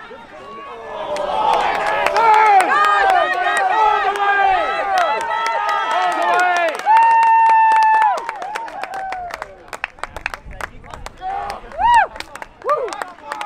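A crowd of spectators cheers and yells loudly.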